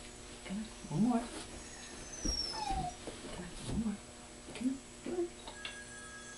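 A dog whines in short, high whimpers close by.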